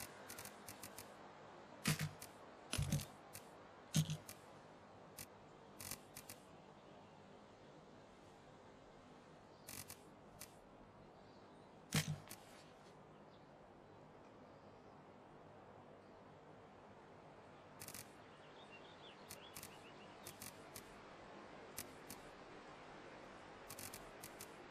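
Short interface clicks and ticks sound as menu items are picked.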